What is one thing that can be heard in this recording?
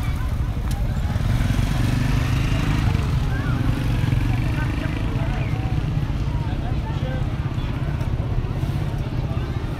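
A crowd of people chatter in the open air nearby.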